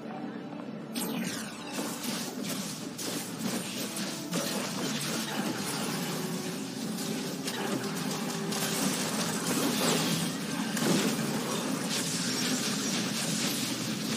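Video game combat effects clash and crackle.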